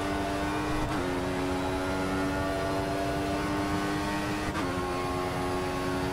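A racing car engine screams steadily at high revs.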